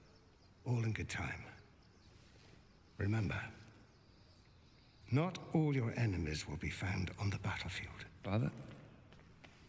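An elderly man speaks calmly and slyly, close by.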